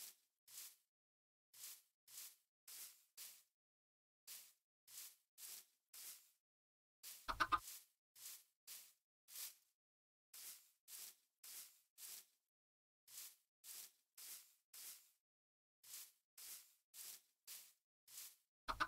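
Footsteps crunch steadily on grass and stone.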